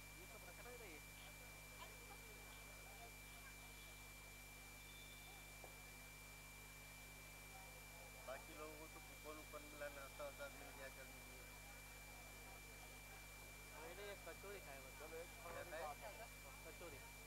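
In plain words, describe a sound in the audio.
Men talk among themselves in a murmuring crowd outdoors.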